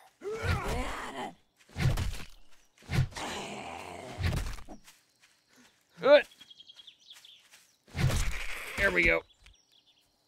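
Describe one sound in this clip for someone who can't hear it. A wooden club thuds heavily against a body.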